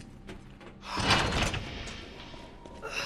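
A heavy metal door opens.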